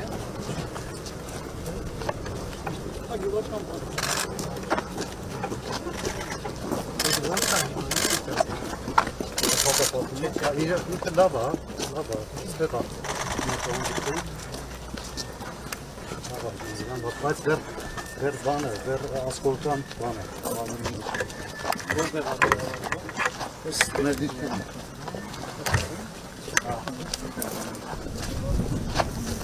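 Men talk quietly nearby while walking.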